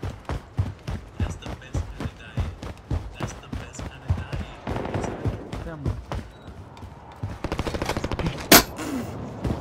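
Gunshots crack again and again, in quick bursts.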